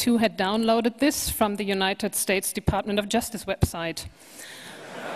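A woman speaks calmly into a microphone in an echoing hall.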